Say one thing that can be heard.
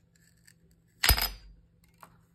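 A tile snaps sharply in two.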